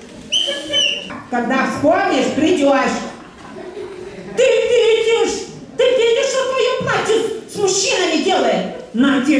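A young woman sings through a microphone over music.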